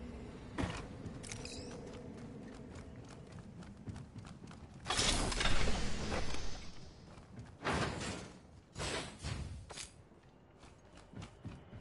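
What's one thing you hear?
Footsteps clatter quickly on metal.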